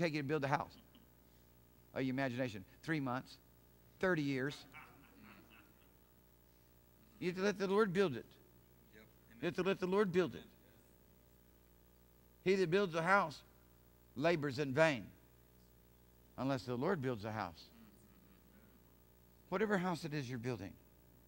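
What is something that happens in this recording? A man speaks calmly and slowly into a microphone, with long pauses.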